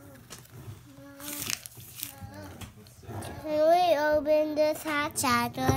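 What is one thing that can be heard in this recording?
A young child talks close by.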